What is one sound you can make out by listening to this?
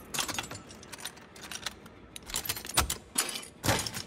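A metal lock clicks and clanks as it is picked open.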